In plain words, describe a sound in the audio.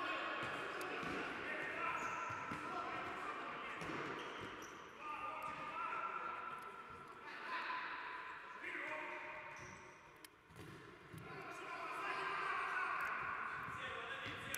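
A ball thumps off players' feet.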